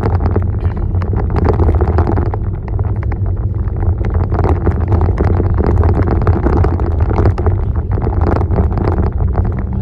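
A car engine hums, heard from inside the cabin.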